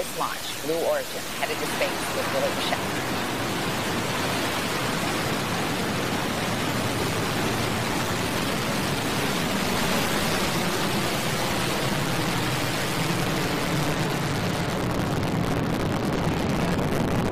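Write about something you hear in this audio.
A rocket engine roars loudly and steadily during liftoff.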